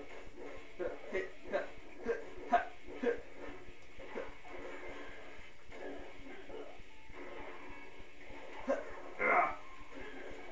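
Sharp hit and slash sounds of a game fight come from a television speaker.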